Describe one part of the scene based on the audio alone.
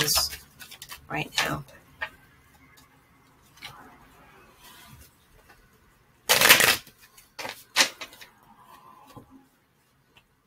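Cards shuffle and rustle in a woman's hands.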